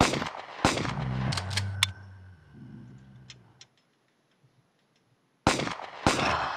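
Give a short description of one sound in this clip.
Gunfire rattles in short, loud bursts.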